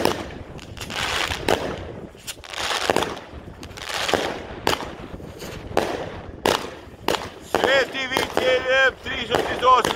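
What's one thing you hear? Fireworks bang and crackle repeatedly overhead.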